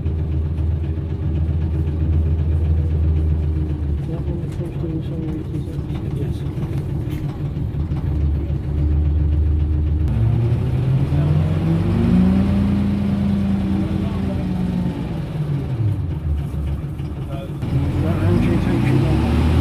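A Leyland National single-decker bus's diesel engine drones, heard from inside the moving bus.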